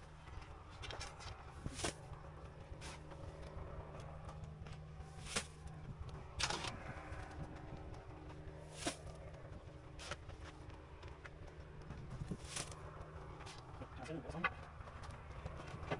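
A shovel scrapes and scoops gravelly soil.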